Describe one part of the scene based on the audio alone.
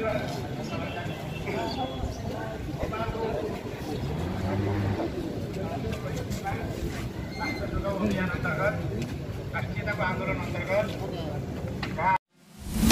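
A crowd of men and women talk and murmur nearby outdoors.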